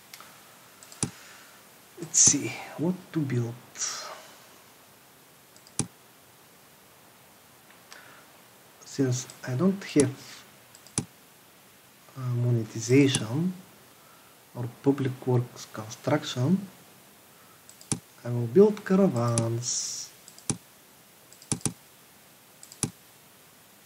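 Interface buttons click sharply now and then.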